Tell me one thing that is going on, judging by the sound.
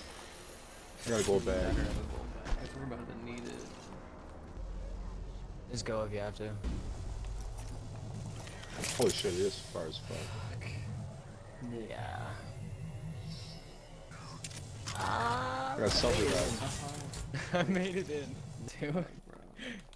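A young man talks through a headset microphone.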